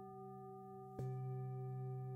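A singing bowl is struck again, and the ringing swells.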